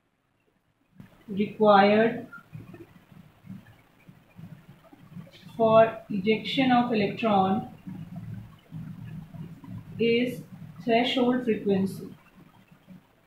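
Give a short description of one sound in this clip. A woman speaks calmly, like a teacher explaining, close by.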